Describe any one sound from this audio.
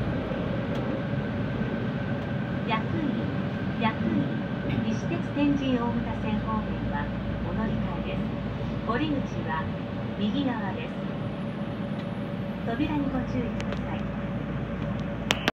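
Train brakes whine with a steady high tone.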